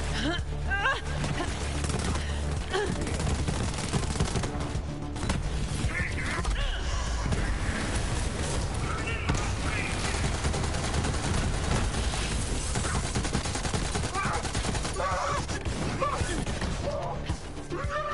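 Gunfire from a game rattles rapidly.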